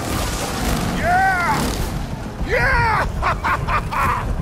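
A young woman shouts with excitement.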